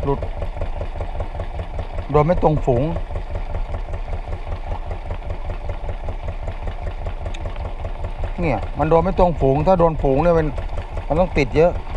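A boat engine thumps steadily nearby.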